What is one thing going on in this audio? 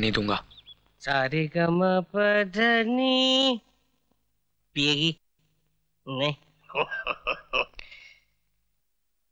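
A middle-aged man speaks playfully in drawn-out tones, close by.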